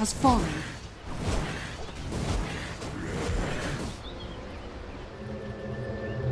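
Magic spell effects whoosh and crackle in a fight.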